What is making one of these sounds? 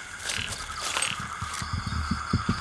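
A plastic bag rustles as a man rummages through it.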